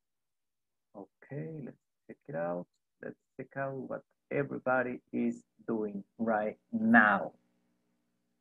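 A middle-aged man speaks calmly and close to a headset microphone, heard as if over an online call.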